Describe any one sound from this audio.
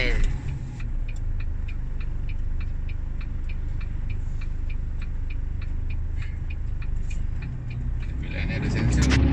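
A turn signal ticks steadily inside the car.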